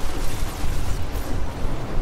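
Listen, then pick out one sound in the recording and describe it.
A loud explosion bursts with a rushing roar.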